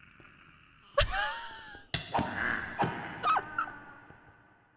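A sword strikes monsters with sharp thwacks.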